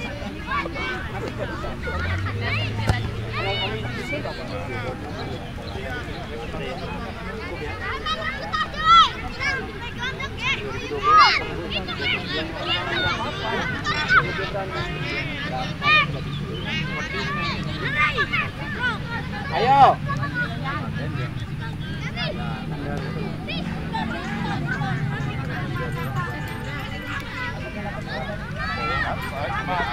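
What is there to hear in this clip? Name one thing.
Young players shout and call out to each other in the distance outdoors.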